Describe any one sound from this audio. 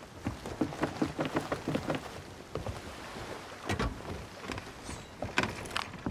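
Waves wash against a wooden hull outdoors.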